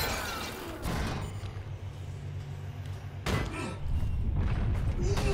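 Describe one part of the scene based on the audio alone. Heavy metal boots clank on a metal floor.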